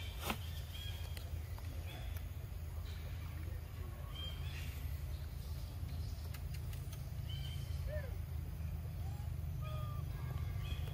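A monkey chews on soft fruit.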